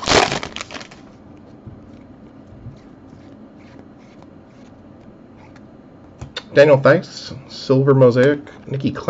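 Trading cards slide against each other as they are flipped through.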